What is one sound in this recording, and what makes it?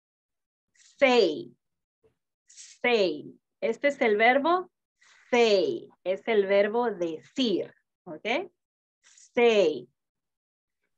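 A woman speaks clearly in short phrases over an online call.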